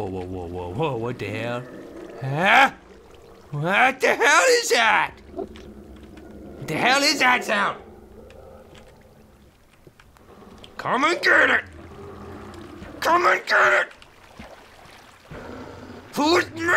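Water trickles and splashes nearby.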